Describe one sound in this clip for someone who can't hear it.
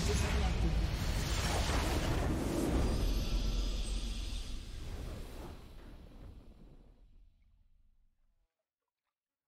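A triumphant fanfare swells and then slowly fades away.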